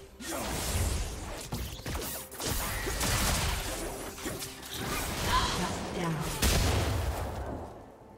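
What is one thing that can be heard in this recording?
Weapon hits clash and thud.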